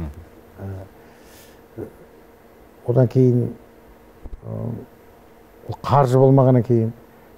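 An elderly man speaks calmly and slowly into a close microphone, with pauses.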